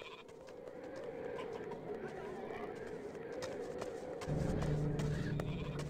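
Footsteps tap on a hard surface.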